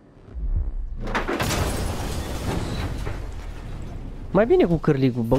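Glass shatters and metal crashes as a heavy truck smashes through.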